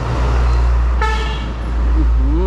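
A vehicle horn honks briefly.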